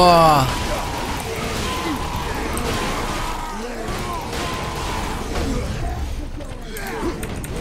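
Blades chop and slash in a fierce melee.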